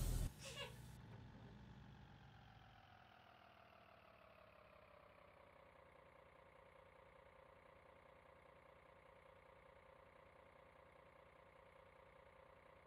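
A bus engine idles steadily.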